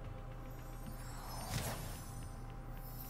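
A fiery whoosh sweeps past.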